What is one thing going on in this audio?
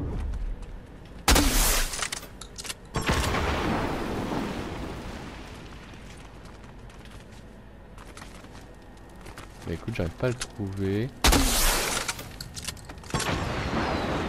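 Footsteps crunch on gravel as a runner jogs.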